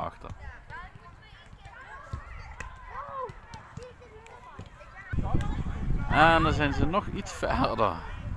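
Children shout and call to each other across an open outdoor pitch.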